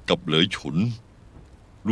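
A man speaks calmly and low.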